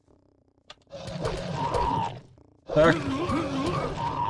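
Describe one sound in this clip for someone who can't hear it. A sword swishes and clashes in a fight.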